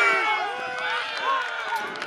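A ball thuds into a goal net.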